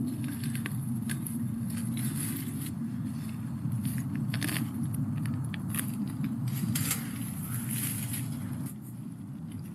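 Dry leaves rustle and crackle as hands dig in the ground.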